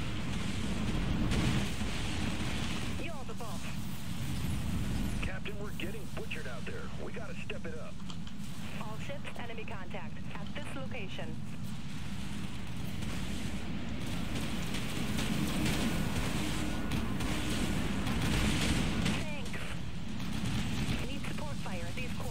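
Guns fire and explosions rumble steadily in a game.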